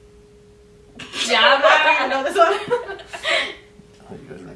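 A group of young women laugh loudly together.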